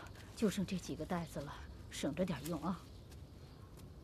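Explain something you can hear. A middle-aged woman speaks calmly outdoors.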